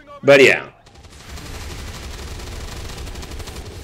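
A heavy gun fires in a fast, steady stream of shots.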